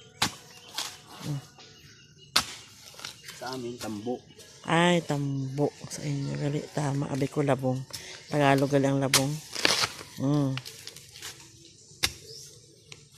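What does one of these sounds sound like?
A man chops at a bamboo shoot with a blade in sharp knocks.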